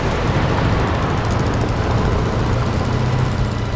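A motorcycle engine putters nearby.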